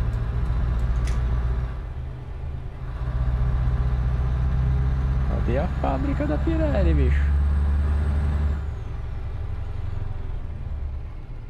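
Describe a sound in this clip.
A heavy truck engine rumbles steadily while driving.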